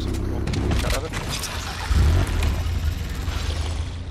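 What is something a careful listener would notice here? A car breaks apart with a sudden crash.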